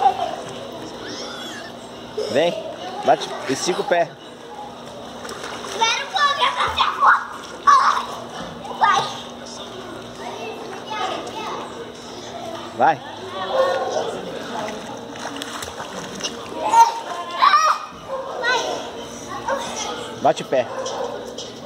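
Water splashes as a child paddles and kicks.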